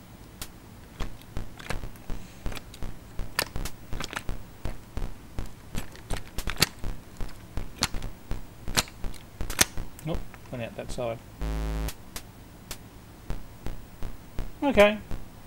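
A computer game makes short electronic clicks as a ball is kicked.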